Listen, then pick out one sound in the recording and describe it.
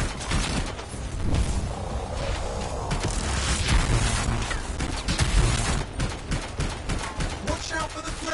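Rapid gunfire and blasts crackle and boom from a video game.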